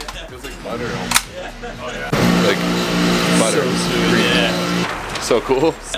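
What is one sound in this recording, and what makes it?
Two men talk and laugh, close by.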